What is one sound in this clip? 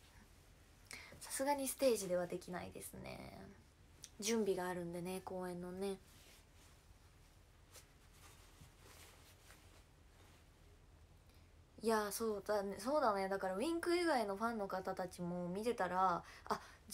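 A young woman speaks close to a microphone.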